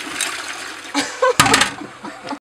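A toilet lid drops shut with a clatter.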